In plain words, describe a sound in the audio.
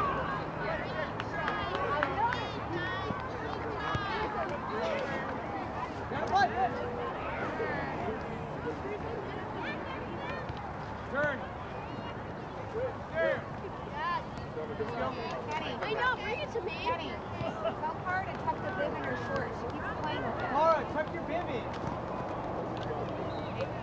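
Young players shout to each other on the field.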